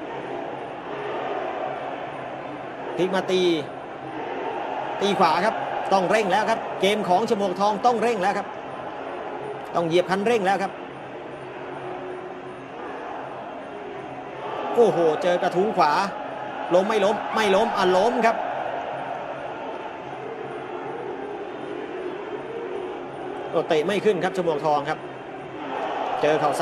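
A large crowd murmurs and cheers in a big hall.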